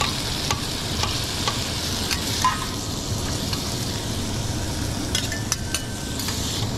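Metal spatulas clink and scrape against a hot griddle.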